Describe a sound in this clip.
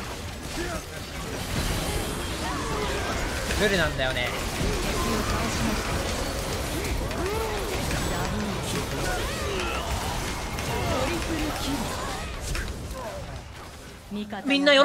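Game spell effects whoosh and clash in quick bursts.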